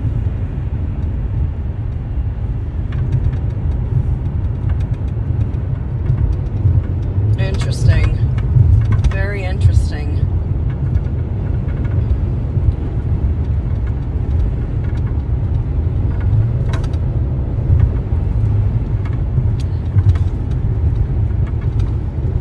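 Road noise rumbles steadily from inside a moving car.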